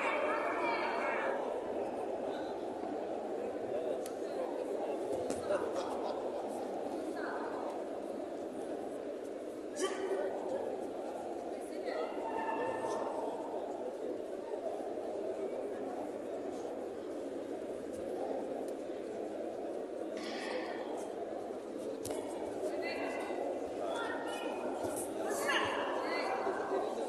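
A large crowd murmurs and chatters steadily in a big echoing hall.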